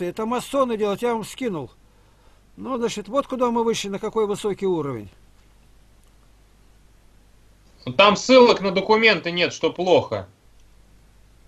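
An elderly man speaks slowly and wearily, close to a microphone, in short bursts with pauses.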